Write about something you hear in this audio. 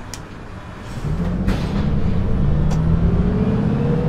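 A diesel city bus pulls away, its engine rising with an automatic gearbox whine.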